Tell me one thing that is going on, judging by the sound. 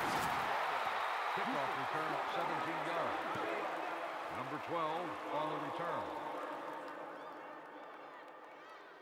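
A large stadium crowd roars and slowly fades.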